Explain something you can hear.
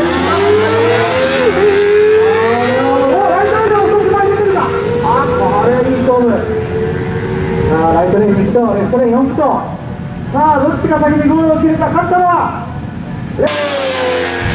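Motorcycle engines roar and rev up through the gears as the bikes accelerate.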